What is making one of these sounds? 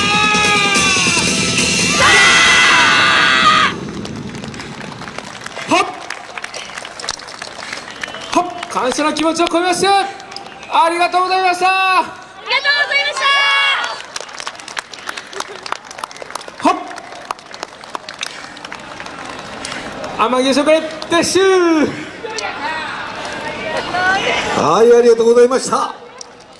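A group of young men and women shout loudly in unison, outdoors.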